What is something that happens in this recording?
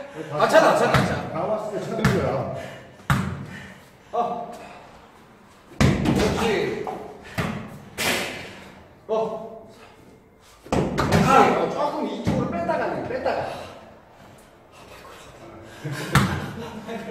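A ball thuds as it is kicked and headed.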